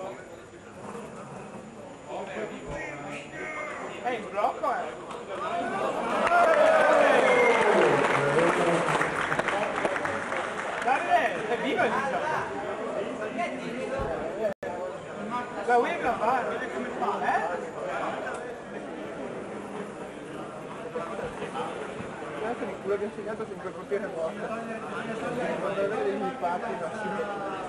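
A crowd of spectators chatters.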